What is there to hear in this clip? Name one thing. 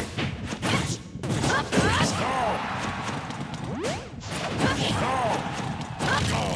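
Blows, kicks and whooshes from a video game fight thump and swish in quick bursts.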